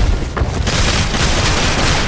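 A waterfall rushes nearby.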